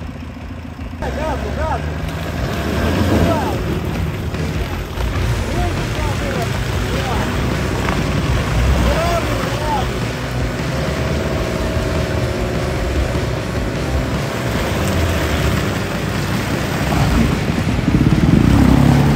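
Tyres spin and churn through wet mud.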